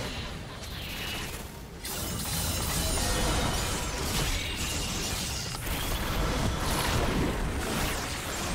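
Spell blasts and hits crackle and boom in a game fight.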